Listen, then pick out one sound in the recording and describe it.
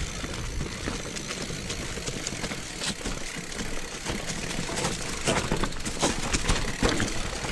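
Bicycle tyres rumble and crunch over a rough dirt trail covered in dry leaves.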